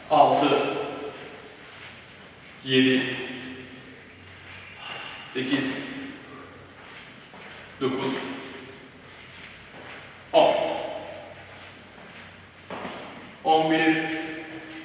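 A man calls out short words loudly in an echoing room.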